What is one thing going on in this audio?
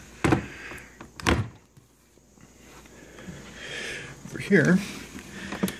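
A wooden drawer knocks and slides open.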